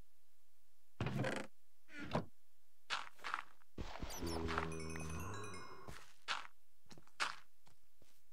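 Blocks of dirt are dug out with crunchy thuds.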